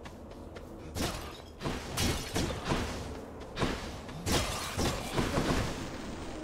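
Magical energy blasts whoosh and crackle in quick bursts.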